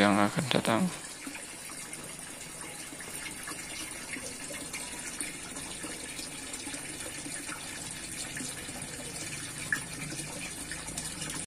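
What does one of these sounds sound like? A thin stream of water splashes steadily into a pond.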